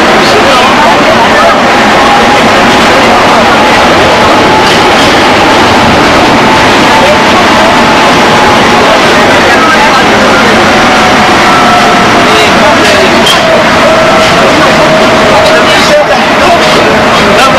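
A train rumbles and roars loudly along the tracks.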